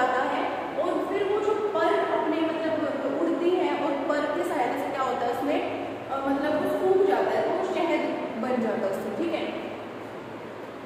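A young woman explains calmly and close by.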